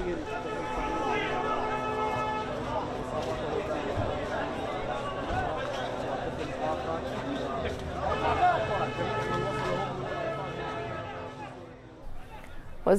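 A crowd of men shouts and clamours outdoors.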